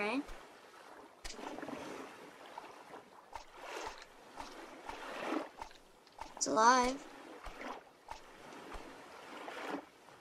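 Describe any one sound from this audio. Footsteps splash steadily through shallow water.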